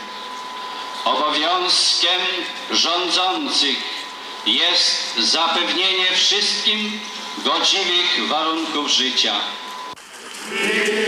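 A man speaks calmly through a loudspeaker outdoors.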